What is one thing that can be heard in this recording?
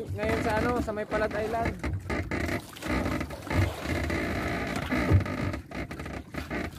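Wind buffets the microphone out on open water.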